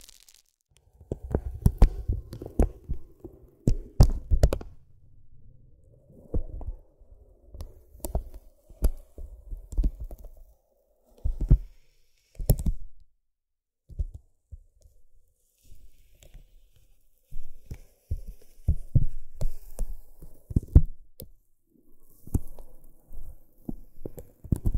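Paper crinkles softly close up.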